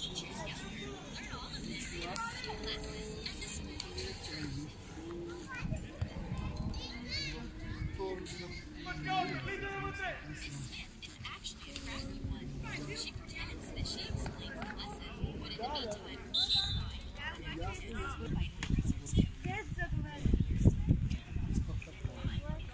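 Children shout and call out on a field outdoors.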